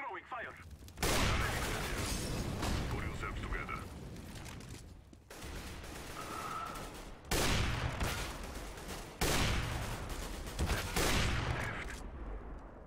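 Rifle shots crack loudly and echo, several times.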